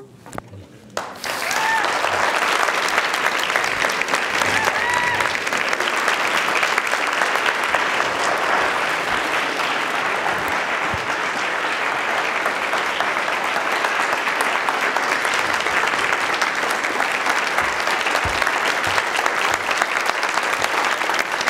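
An audience applauds loudly in a large hall.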